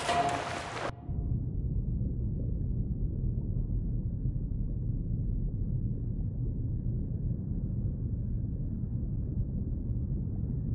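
Muffled, deep underwater rumbling goes on steadily.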